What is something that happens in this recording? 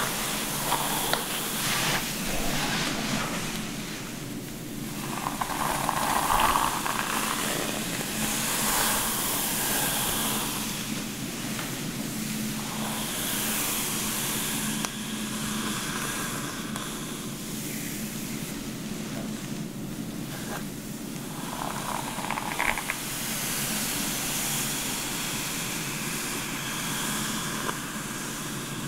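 A hairbrush swishes softly through long hair, up close.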